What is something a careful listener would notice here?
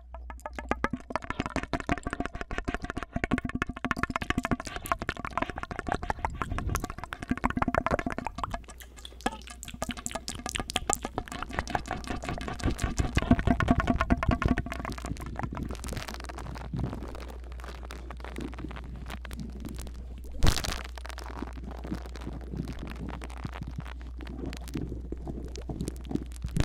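Fingers tap and scratch right against a microphone.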